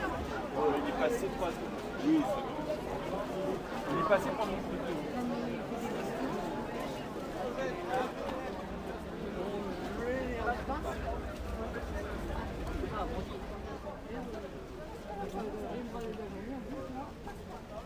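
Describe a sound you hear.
A crowd of marchers chatters and calls out nearby, outdoors.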